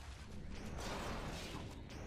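A plasma bolt bursts with a crackling blast close by.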